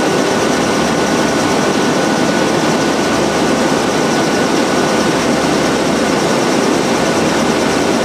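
An industrial sheeter line runs with a steady mechanical roar.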